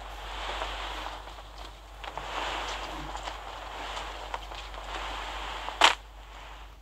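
Wind rushes steadily past during a parachute descent.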